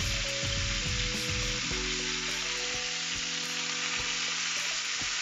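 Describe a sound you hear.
Chicken pieces sizzle steadily in a hot frying pan.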